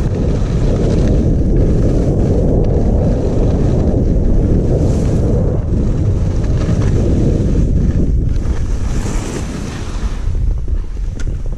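Skis hiss and scrape over the snow at speed.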